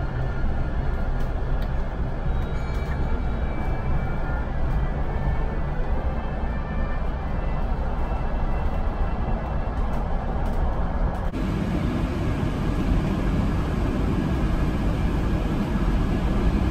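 A bus drives along with a steady low rumble.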